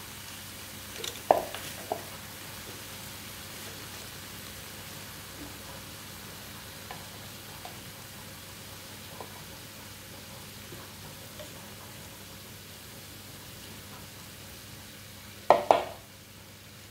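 Metal tongs clack against a grill plate.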